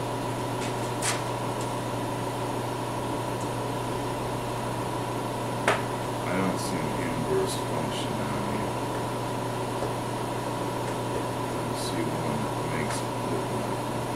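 Metal taps and clicks against a steel table now and then.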